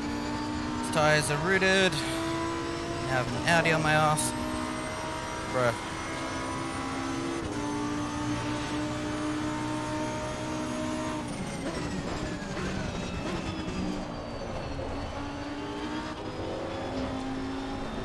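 A racing car engine roars steadily, its pitch rising and falling as it speeds up and slows down.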